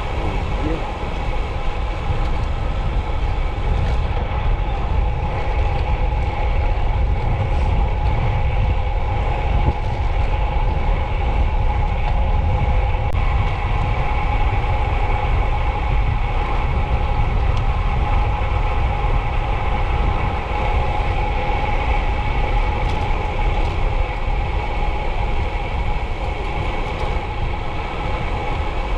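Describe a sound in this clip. Bicycle tyres hum steadily on asphalt.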